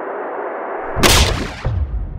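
A toy blaster fires with a sharp burst.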